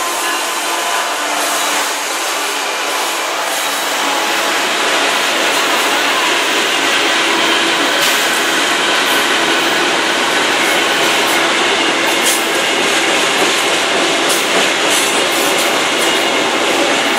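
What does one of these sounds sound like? Locomotives rumble and roar loudly as they pass close by.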